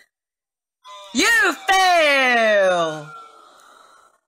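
A falling electronic jingle plays from a computer game.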